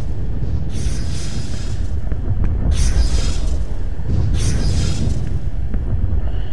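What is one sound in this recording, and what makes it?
Ships fire bursts of weapon blasts at an asteroid.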